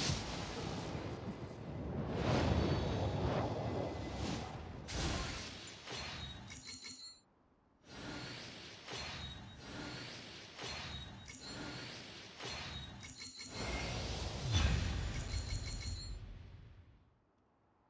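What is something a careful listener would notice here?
A game's magical whooshes and chimes swell and sparkle.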